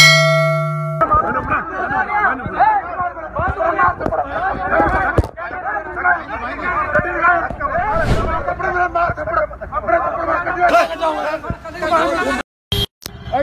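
Several men shout and argue loudly, close by.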